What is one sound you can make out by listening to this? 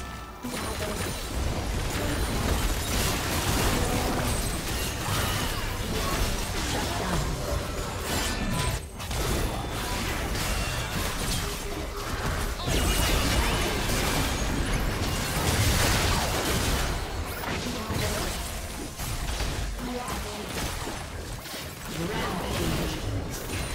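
Game spell effects burst and crackle in quick succession.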